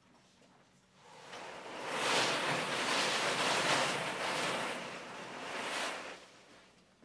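Paper slips rustle as a woman stirs them by hand.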